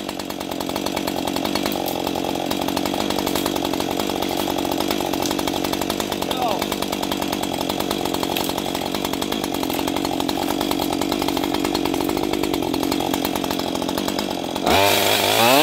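A chainsaw runs with a steady, buzzing engine drone.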